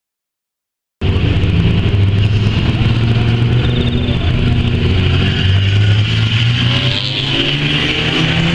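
Race car engines roar around a dirt track outdoors.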